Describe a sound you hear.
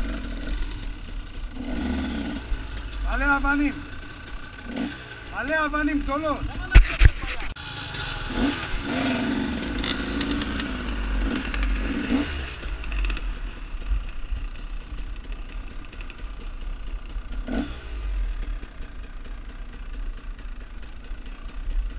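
A dirt bike engine idles and revs up close.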